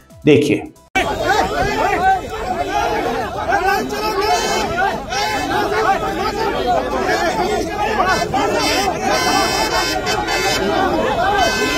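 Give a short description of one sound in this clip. A crowd of men shout and argue over one another outdoors.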